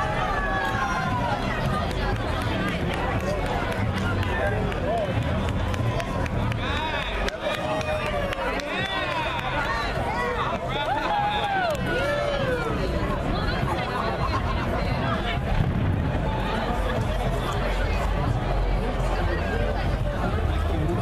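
A crowd of men and women chatters and calls out outdoors.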